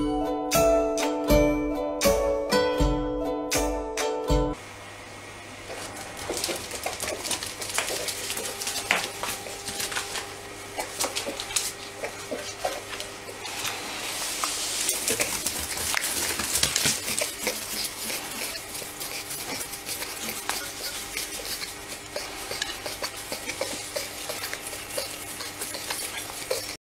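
A small animal snuffles and grunts.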